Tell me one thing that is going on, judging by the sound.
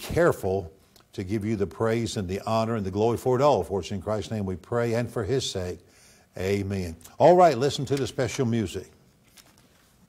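A man speaks clearly through a microphone.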